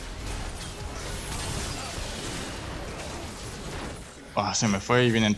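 Fighting sound effects clash and whoosh in a video game.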